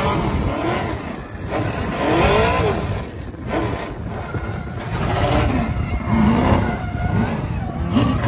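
Tyres screech on asphalt as a drift car slides sideways alongside.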